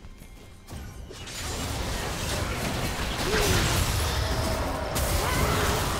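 Game spell effects whoosh, crackle and blast in a busy fight.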